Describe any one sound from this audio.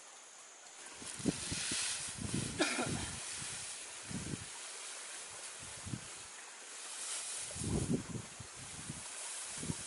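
Dry thatch rustles and crackles as it is handled.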